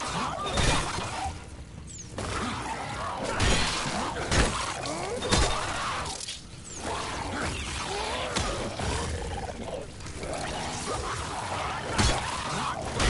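A creature shrieks and growls.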